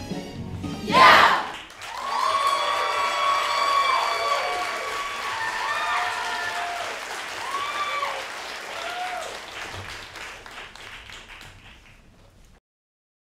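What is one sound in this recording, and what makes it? An audience cheers and whoops loudly in a large hall, then fades.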